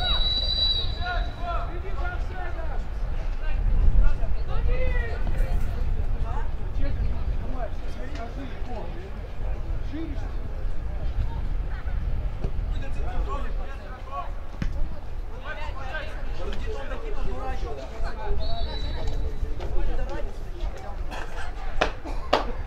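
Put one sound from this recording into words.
Young men shout and call to each other from across a playing field.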